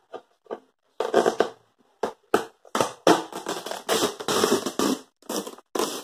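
Plastic wrapping crinkles and rustles under fingers.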